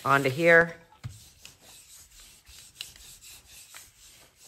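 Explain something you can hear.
A sponge dabs softly on paper.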